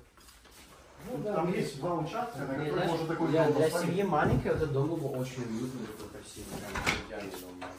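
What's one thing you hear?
Men talk with each other nearby.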